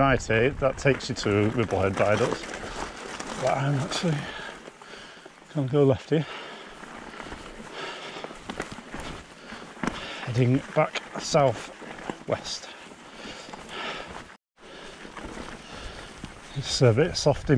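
Bicycle tyres crunch over gravel and rough ground.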